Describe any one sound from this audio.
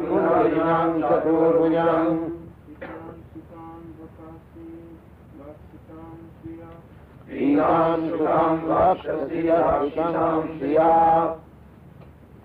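An elderly man chants in a steady, deep voice.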